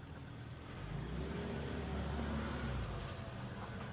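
A man gulps a drink from a can.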